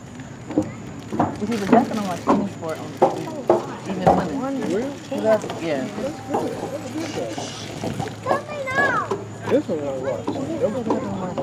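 Children shout and chatter close by, outdoors.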